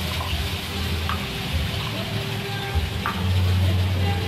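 Ceramic bowls clink as they are stacked.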